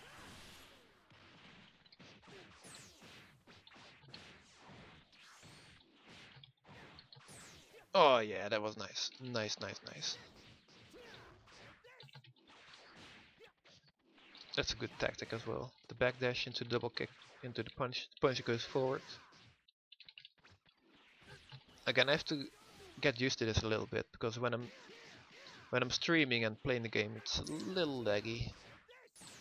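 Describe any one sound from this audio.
Punches and kicks land with quick, sharp thuds.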